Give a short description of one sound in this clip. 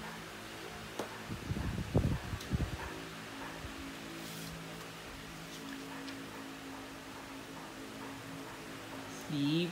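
Stiff cardboard cards flap and tap as a child handles them.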